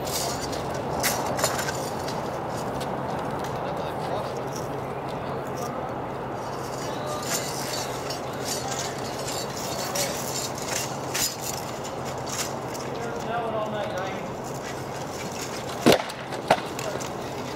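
Swords clash with sharp metallic knocks.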